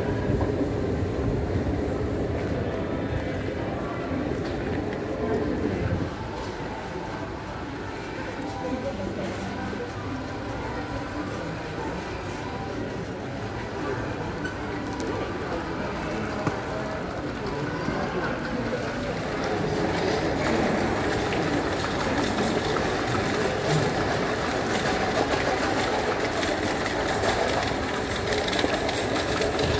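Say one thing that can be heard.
A crowd murmurs in a large indoor space.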